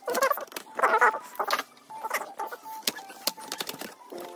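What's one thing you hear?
A plastic casing creaks and snaps as it is pried open.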